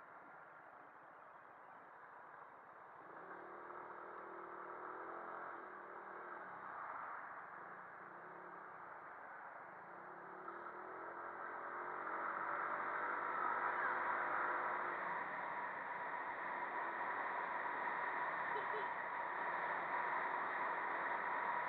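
A scooter engine hums steadily while riding along a street.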